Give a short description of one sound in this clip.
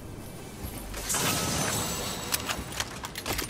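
A treasure chest bursts open with a bright shimmering chime.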